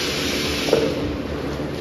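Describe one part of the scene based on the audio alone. A wooden board knocks against a stack of boards.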